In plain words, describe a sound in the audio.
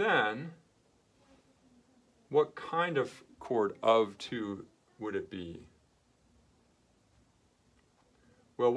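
A man speaks calmly up close, explaining in short phrases.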